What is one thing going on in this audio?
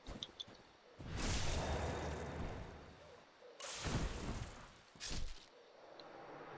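Sword blows clash and thud loudly.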